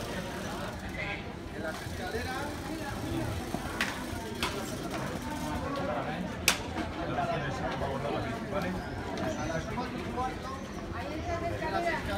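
Several men chat among themselves outdoors.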